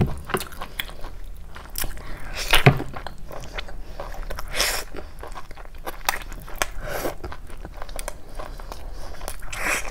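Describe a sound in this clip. A young woman chews food wetly and smacks her lips close to a microphone.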